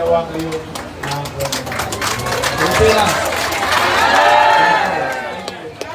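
A crowd claps hands.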